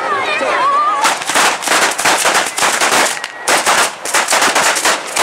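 Firecrackers crackle and bang in rapid bursts.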